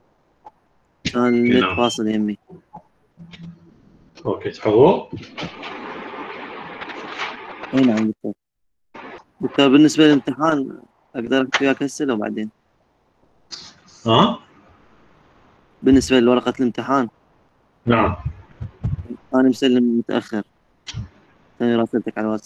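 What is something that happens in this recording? A middle-aged man speaks over an online call.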